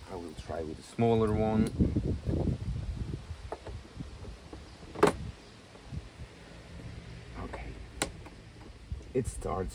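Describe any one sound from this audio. Plastic parts click and clatter.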